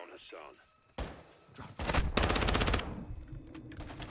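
Gunshots crack loudly at close range.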